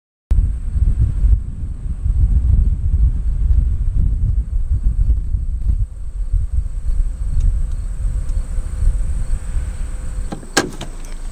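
Wind buffets the microphone with a heavy low rumble.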